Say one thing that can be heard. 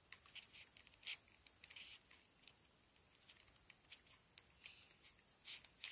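Foam rustles and squeaks softly as hands press and handle it.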